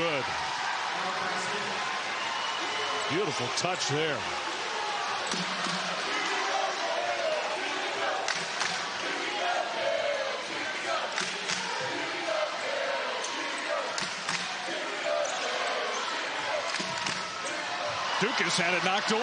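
A large indoor crowd murmurs and cheers in an echoing arena.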